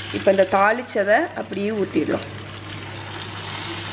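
Hot oil and spices sizzle as they are poured into a pan of simmering curry.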